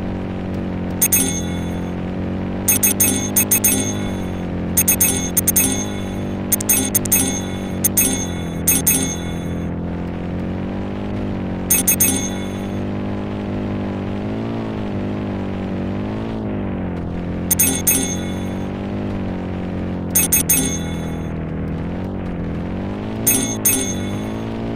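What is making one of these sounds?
Bright coin chimes ring out in quick bursts.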